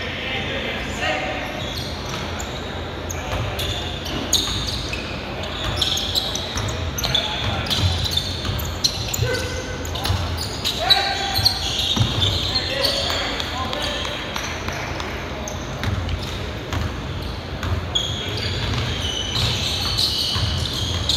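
Men shout to each other across a large echoing gym.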